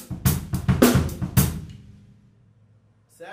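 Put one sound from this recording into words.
Drums and cymbals crash loudly and ring out.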